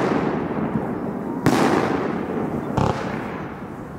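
A firework rocket whooshes upward.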